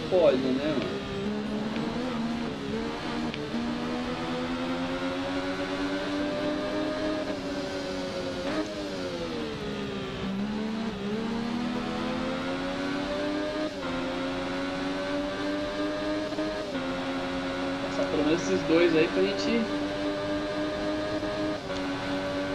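A motorcycle engine whines loudly, its pitch dropping and rising with gear shifts.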